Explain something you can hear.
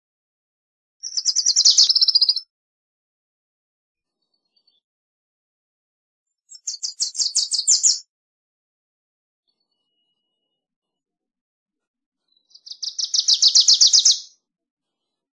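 A small songbird sings short, fast, high trilling phrases close by, with pauses between them.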